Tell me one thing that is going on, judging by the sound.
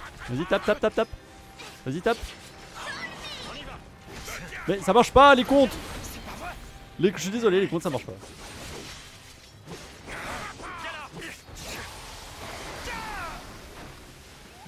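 Swords clash and strike in a game battle.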